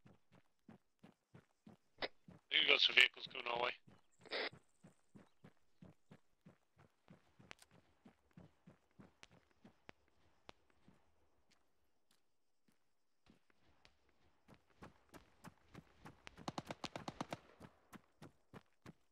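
Footsteps run quickly and evenly on hard ground.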